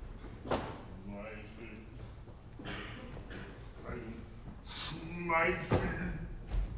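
A man speaks in short, questioning phrases.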